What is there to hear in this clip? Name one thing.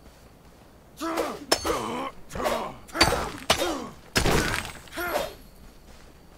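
An axe strikes stone with sharp, ringing blows.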